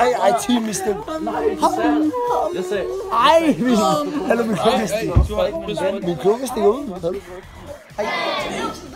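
Young men talk and groan close by.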